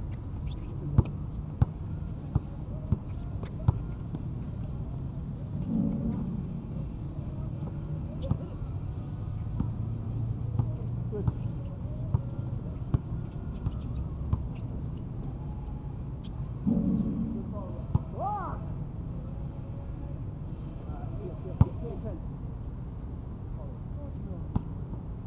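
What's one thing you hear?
A basketball bounces on an outdoor court.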